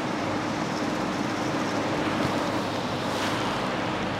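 Fabric rustles as it is moved.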